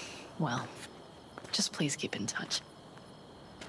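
A woman speaks calmly, heard through game audio.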